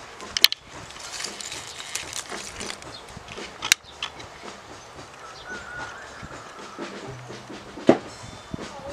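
Clods of soil break and fall with soft thuds.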